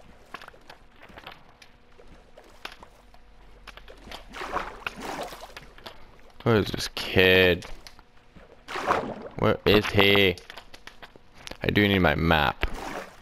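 Water splashes softly as a swimmer paddles.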